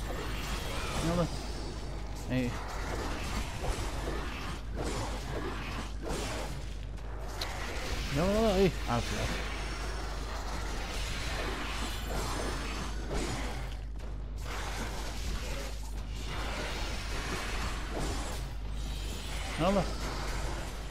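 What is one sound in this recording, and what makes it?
Creatures grunt and shriek as they are hit.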